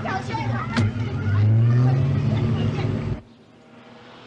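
A car engine hums from inside the car.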